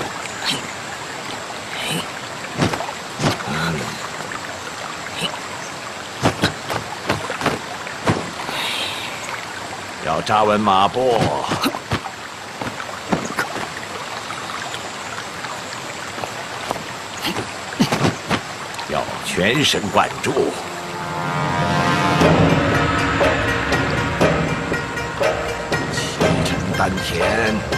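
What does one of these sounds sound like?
Cloth swishes sharply with quick martial arts moves.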